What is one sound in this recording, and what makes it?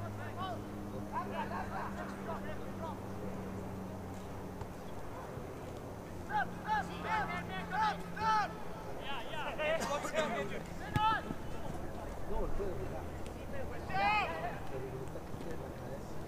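Young men shout to each other across an open outdoor field at a distance.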